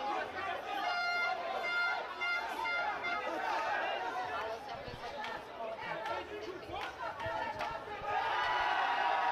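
A crowd of young men shouts and cheers loudly close by.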